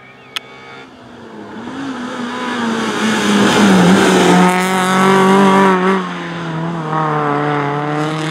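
A rally car engine approaches from a distance, growing louder and revving hard as it passes.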